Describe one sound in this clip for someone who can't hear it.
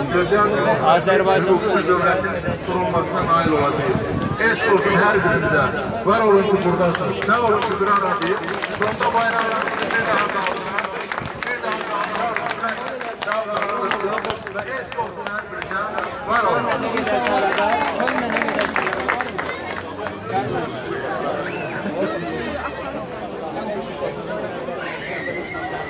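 A crowd of men and women chant and shout together outdoors.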